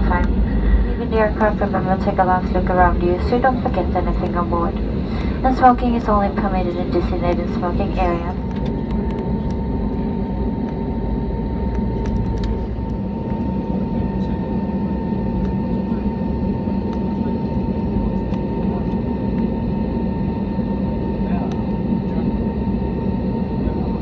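A jet engine hums steadily as an airliner taxis, heard from inside the cabin.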